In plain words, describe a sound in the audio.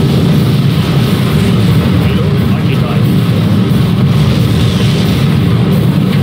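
Explosions crackle and pop as airships burn.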